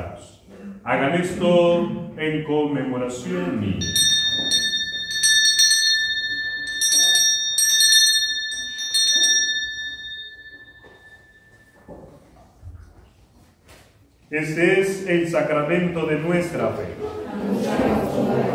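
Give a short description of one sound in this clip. A young man speaks steadily through a microphone in an echoing room.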